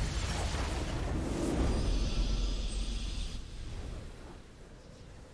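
A triumphant victory fanfare swells loudly and then fades away.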